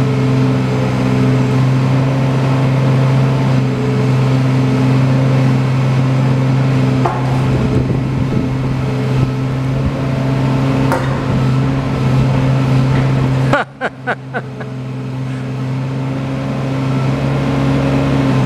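A diesel engine of a small excavator idles and hums steadily.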